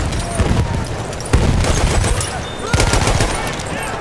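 Rifle shots crack sharply.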